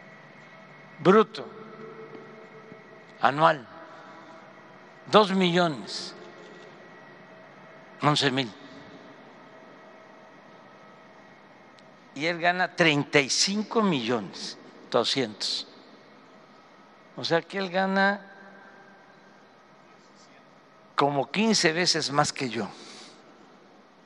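An older man speaks calmly and haltingly into a microphone, with pauses, in a large echoing room.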